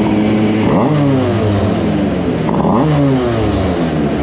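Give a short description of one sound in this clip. A kart engine revs up sharply twice and drops back.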